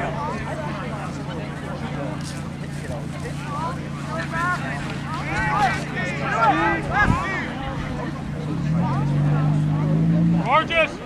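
Young players shout calls to each other across an open field, heard from a distance.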